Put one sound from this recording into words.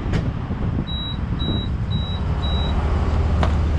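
A fuel pump keypad beeps several times in quick succession.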